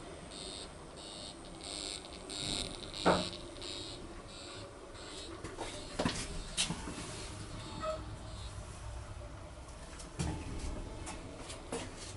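A lift hums and rumbles softly as it travels.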